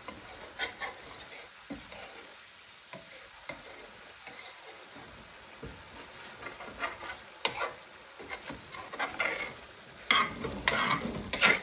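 A ladle stirs a thick sauce and scrapes against a metal pan.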